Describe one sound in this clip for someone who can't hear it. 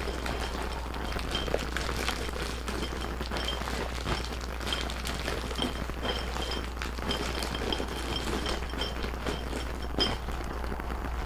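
Small beads rattle and click in a glass jar as paws stir them.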